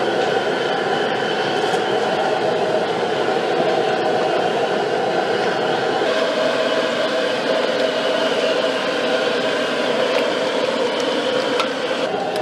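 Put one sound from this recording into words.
Food sizzles loudly in a hot wok.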